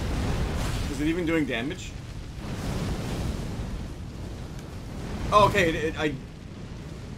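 A man exclaims loudly into a close microphone.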